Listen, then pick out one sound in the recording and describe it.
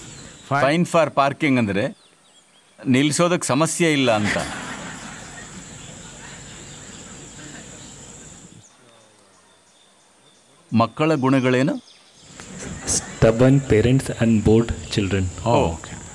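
An elderly man speaks calmly into a microphone, with pauses.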